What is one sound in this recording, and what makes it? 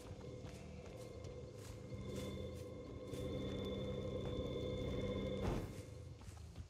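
A low eerie drone swells and then cuts off with a burst.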